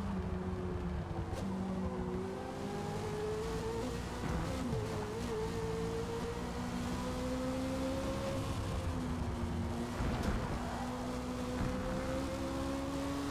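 A racing car engine roars steadily, its pitch shifting as the car speeds up and slows down.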